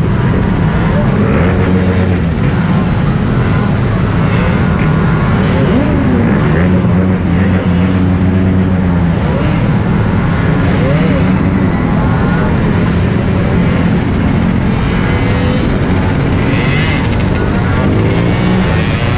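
A motorcycle engine rumbles steadily up close.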